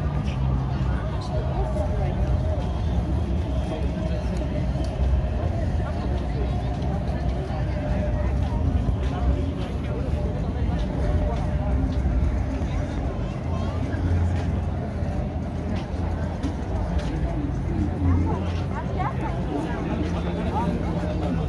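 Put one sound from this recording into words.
A crowd chatters and murmurs all around outdoors.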